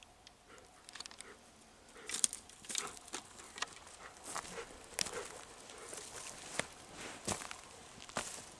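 Footsteps crunch on twigs and dry leaves close by.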